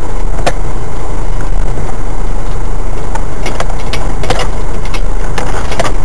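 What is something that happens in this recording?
A vehicle's engine rumbles low while driving.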